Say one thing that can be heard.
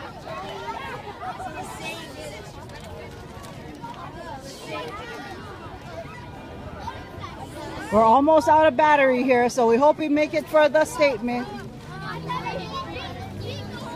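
A crowd of children and adults chatters and calls out outdoors.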